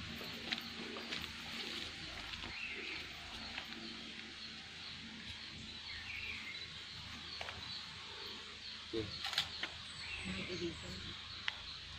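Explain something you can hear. Footsteps crunch on dry leaves and twigs nearby.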